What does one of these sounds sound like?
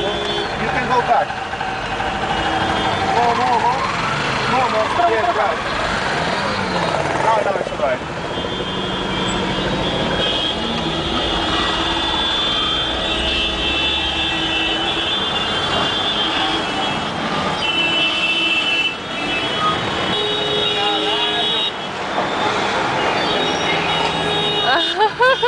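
Car horns honk repeatedly in dense traffic.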